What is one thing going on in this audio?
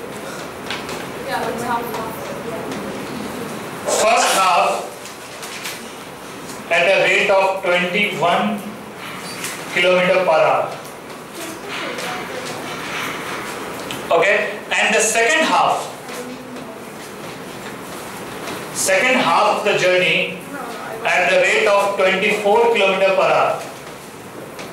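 A middle-aged man speaks calmly through a headset microphone, in short bursts.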